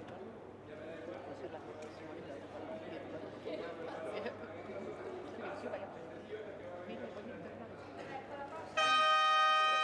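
Two men talk quietly in a large echoing hall.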